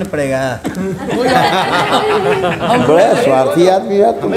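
A group of men laugh loudly together.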